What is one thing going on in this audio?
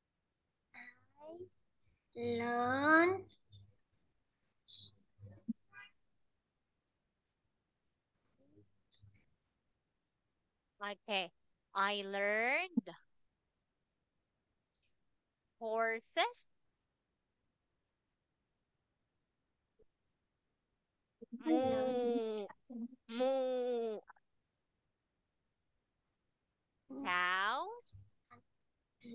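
A young woman speaks brightly over an online call.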